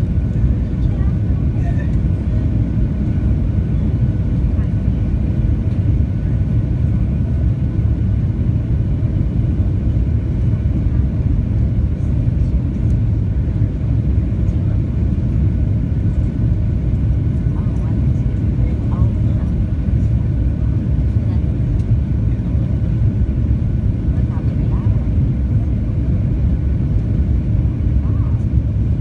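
A jet engine roars steadily in flight, heard from inside the cabin.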